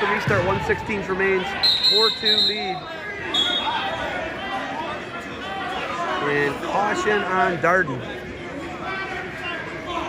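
Spectators shout and cheer loudly in a large echoing gym.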